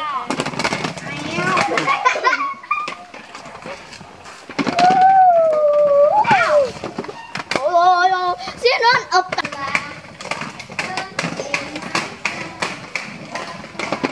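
Roller skate wheels rattle and scrape on paving.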